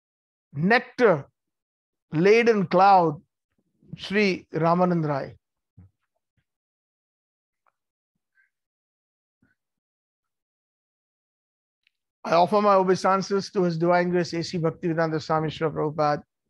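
A middle-aged man chants in a steady voice, heard through an online call.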